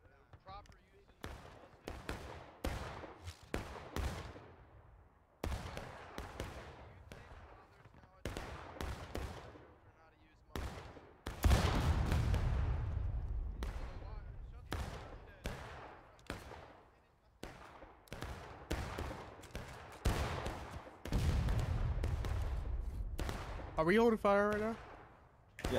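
Gunshots crack and boom across open ground, echoing into the distance.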